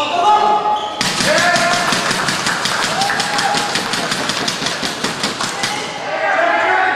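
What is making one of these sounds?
A crowd of spectators claps after the rally.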